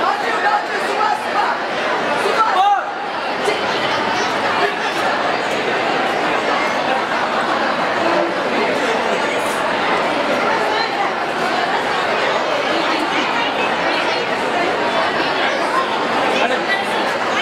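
Many voices of men and women chatter nearby.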